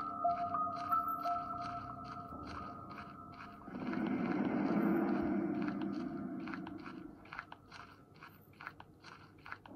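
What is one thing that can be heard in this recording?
Footsteps echo steadily in a stone corridor.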